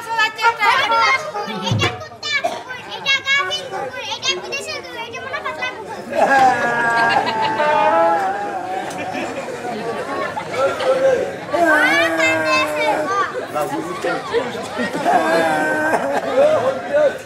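Young girls sing a lively song loudly through a loudspeaker.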